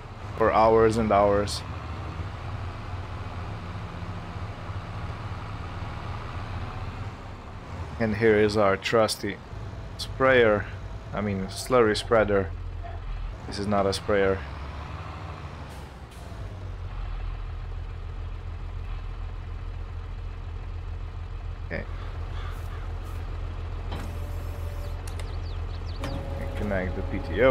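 A tractor engine hums steadily at low idle.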